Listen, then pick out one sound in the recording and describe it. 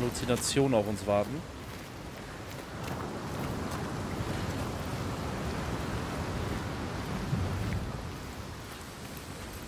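Footsteps crunch on rock.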